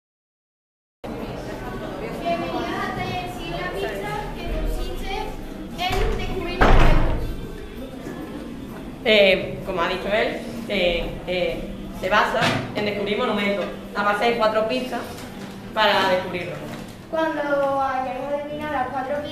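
Teenagers talk with one another nearby.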